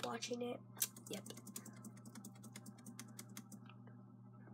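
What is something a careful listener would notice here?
Keys on a computer keyboard click and tap.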